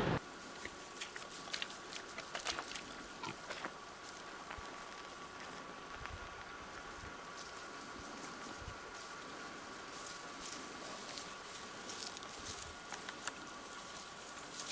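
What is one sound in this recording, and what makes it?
Dry grass rustles and crackles close by.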